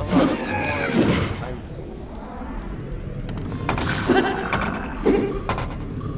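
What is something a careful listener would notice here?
A creature grunts and growls.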